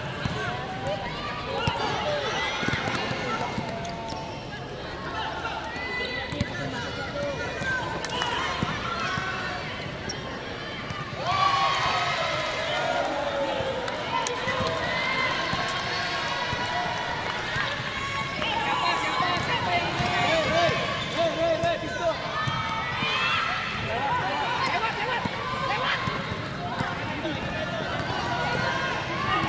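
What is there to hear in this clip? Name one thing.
Sneakers squeak sharply on a hard court.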